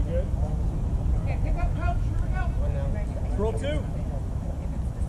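Young men call out across an open field.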